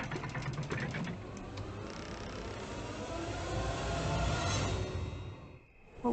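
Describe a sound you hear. Wooden shutters creak open.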